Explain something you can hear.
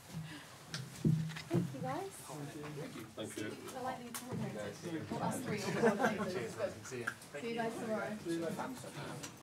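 A young man chats casually close by.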